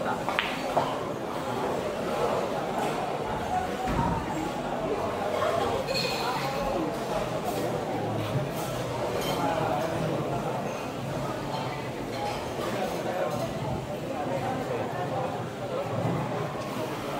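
Several men chat in the background.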